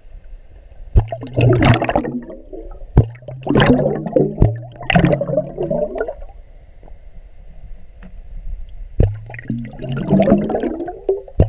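Water churns and bubbles in loud bursts, heard muffled from underwater.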